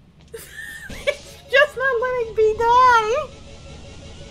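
A young woman laughs into a microphone.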